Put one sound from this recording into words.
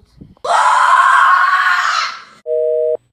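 A young boy shouts excitedly close by.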